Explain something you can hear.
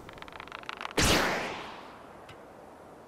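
A loud whoosh bursts out and quickly fades.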